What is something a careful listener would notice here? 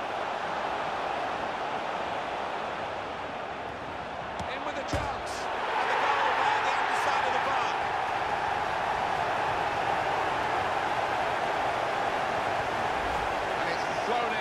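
A large stadium crowd roars and cheers, swelling louder after a goal.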